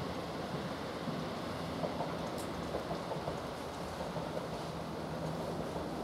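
An electric train rumbles steadily along the rails as it approaches.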